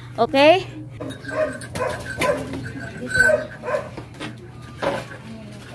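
A young woman talks softly to a dog close by.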